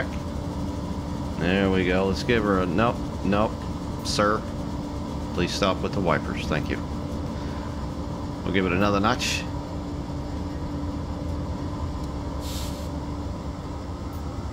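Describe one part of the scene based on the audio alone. A locomotive engine rumbles steadily.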